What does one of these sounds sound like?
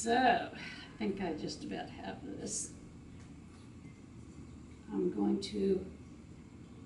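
A woman talks calmly nearby, explaining.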